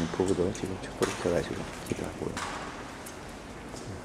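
Adults murmur in a large echoing hall.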